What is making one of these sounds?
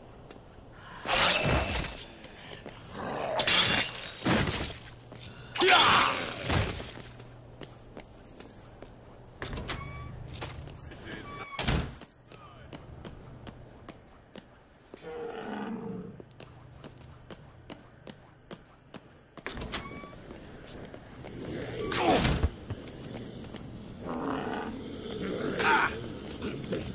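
Heavy blows thud into bodies again and again.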